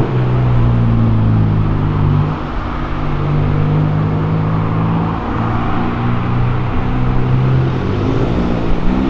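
A car engine idles with a deep rumble.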